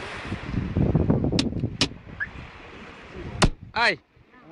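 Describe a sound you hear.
A hand bangs on a car window.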